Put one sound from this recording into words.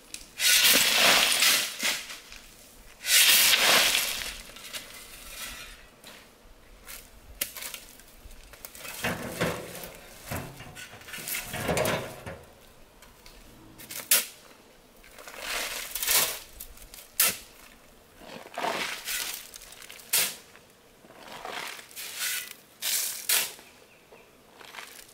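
A shovel scrapes and scoops into a pile of sand.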